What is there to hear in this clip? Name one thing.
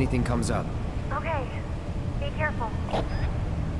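A young woman answers softly.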